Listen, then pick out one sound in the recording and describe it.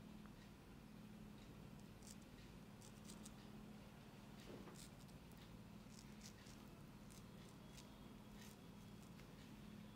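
A straight razor scrapes softly across stubble.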